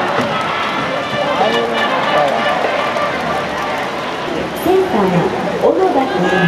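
A crowd in a stadium chants and cheers loudly outdoors.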